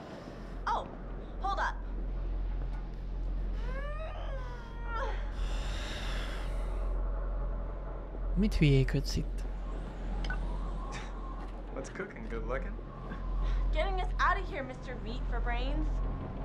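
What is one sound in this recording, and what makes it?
A young woman speaks through a game's sound.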